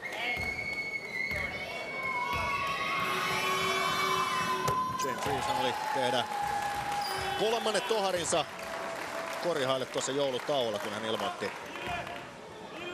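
A crowd in a large echoing hall cheers and blows horns.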